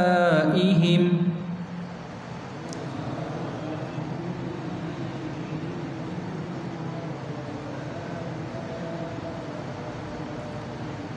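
A man recites in a chanting voice through a microphone, echoing in a large room.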